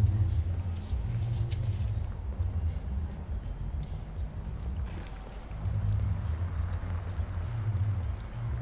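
Footsteps hurry along a hard pavement.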